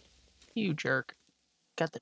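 Dirt crunches as it is dug up.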